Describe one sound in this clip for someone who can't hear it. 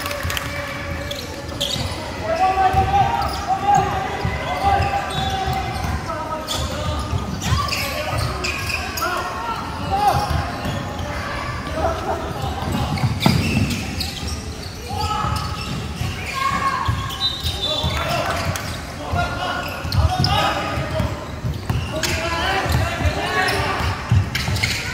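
Sneakers squeak sharply on the wooden floor.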